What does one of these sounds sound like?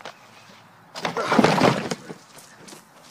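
A person crashes loudly through a cardboard box and thuds onto the ground.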